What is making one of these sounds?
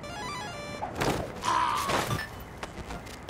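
Heavy blows thud as a man is knocked down.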